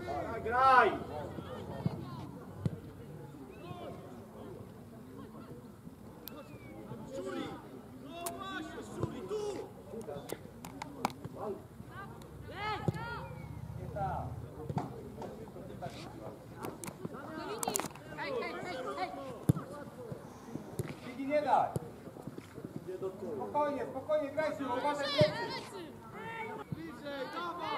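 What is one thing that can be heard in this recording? Young players shout and call to each other outdoors.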